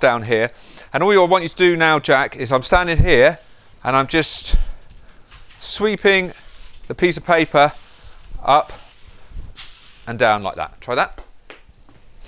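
A man speaks calmly and instructively nearby.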